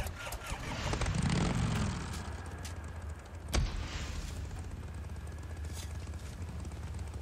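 A motorcycle engine idles with a low, steady rumble.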